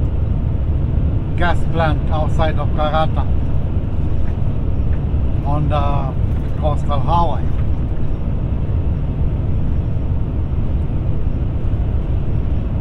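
A vehicle's tyres roar steadily on a paved road.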